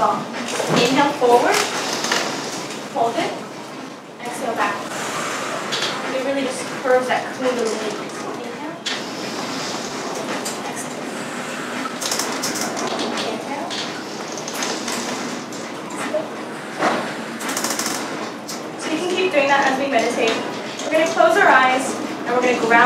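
A young woman speaks calmly to a small group nearby.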